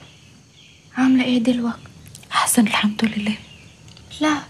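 A young woman speaks quietly and seriously, close by.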